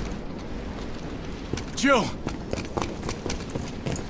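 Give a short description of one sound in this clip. Footsteps run closer on a hard floor.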